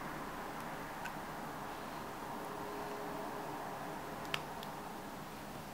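A small metal hair cuff clicks between fingers.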